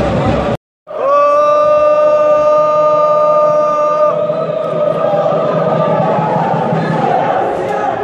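A large crowd chants loudly and in unison outdoors.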